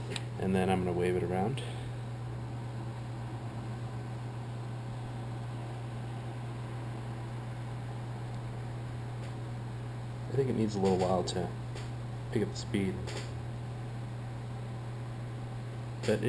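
A laptop hums steadily and low.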